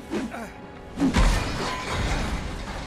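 A heavy thud and crash ring out.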